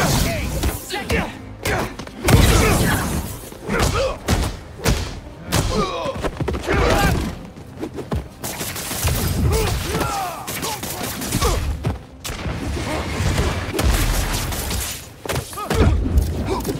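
Punches and kicks thud in a video game fight.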